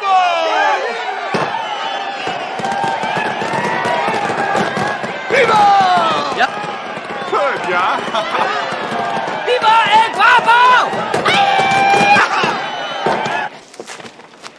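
A crowd cheers and whoops loudly outdoors.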